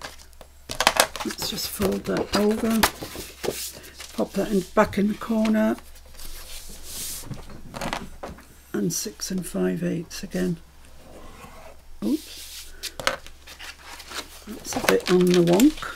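A sheet of card rustles and slides as it is turned and folded.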